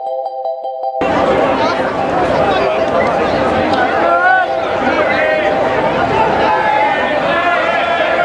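A crowd of men and women chatters and calls out nearby outdoors.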